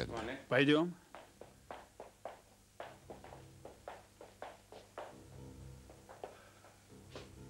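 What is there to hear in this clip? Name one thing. Footsteps walk away across a hard floor.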